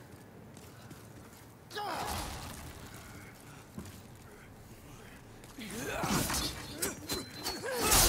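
Armoured footsteps clank on stone steps.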